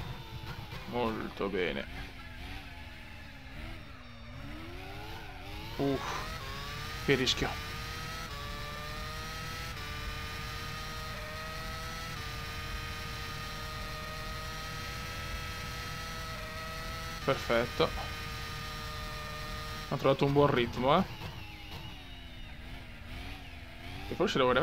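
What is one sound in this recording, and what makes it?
Gear shifts crack sharply as the engine changes pitch.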